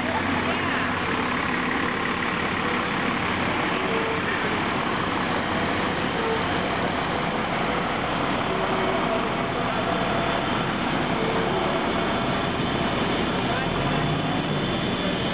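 A fire truck's engine rumbles as it rolls slowly past close by.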